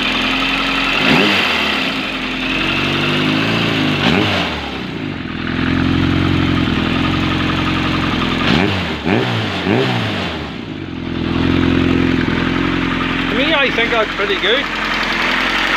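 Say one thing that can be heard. An inline-four motorcycle engine is revved with short throttle blips.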